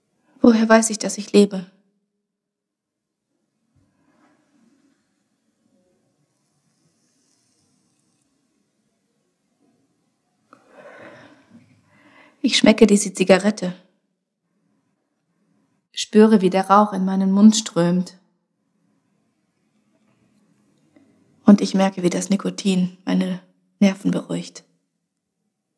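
A young woman speaks softly and close up, in short phrases with pauses.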